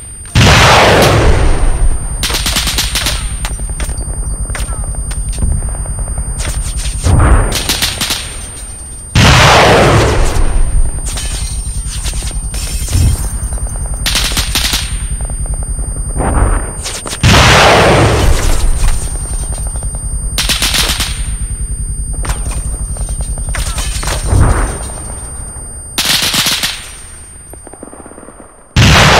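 Rapid cannon fire thuds and rattles.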